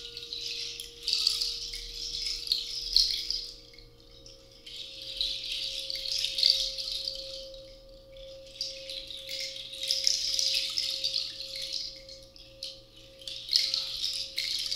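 A finger rubs around the rim of a glass, drawing out a steady, softly pulsing ringing tone.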